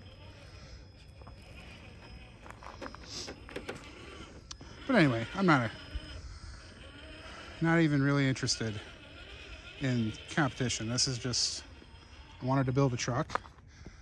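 A small electric motor whirs as a toy truck crawls over rocks.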